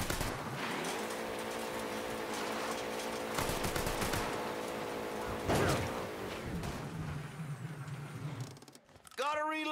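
A car engine revs.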